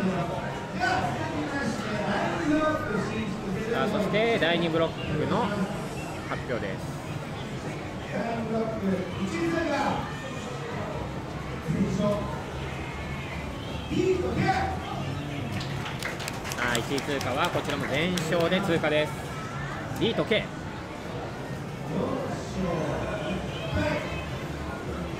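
A crowd of young people chatters and calls out in a room.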